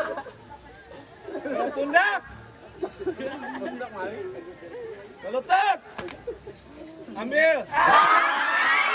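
Young men shout and laugh excitedly nearby.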